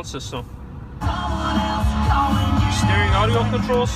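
A car radio plays music.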